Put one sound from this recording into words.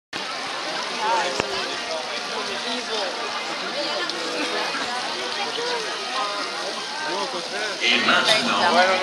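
A large crowd of men, women and children chatters nearby outdoors.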